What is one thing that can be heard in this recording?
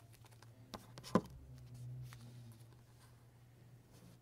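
Paper rustles and crinkles under fingers.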